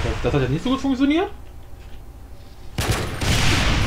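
A gun fires in a game with loud blasts.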